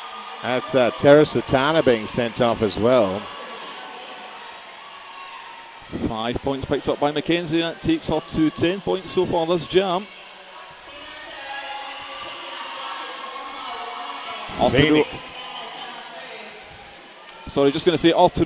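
A large crowd murmurs in an echoing hall.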